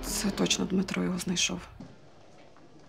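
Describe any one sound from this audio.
A woman speaks with surprise, close by.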